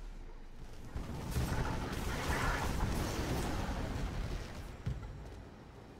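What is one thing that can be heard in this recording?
A magical spell whooshes and roars.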